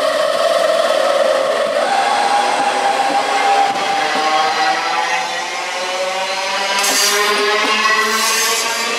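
Train wheels rumble and click over the rails close by.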